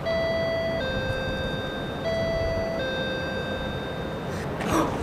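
A doorbell chimes twice with a two-tone ding-dong.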